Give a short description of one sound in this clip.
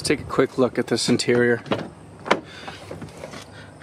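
A vehicle door clicks open.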